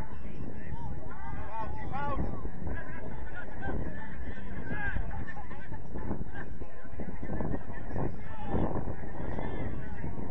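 Young women and men shout to each other across an open field.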